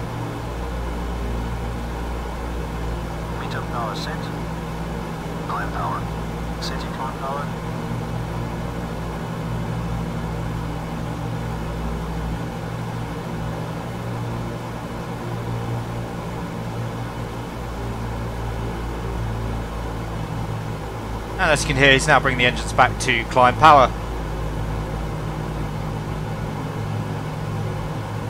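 Propeller engines drone steadily in flight.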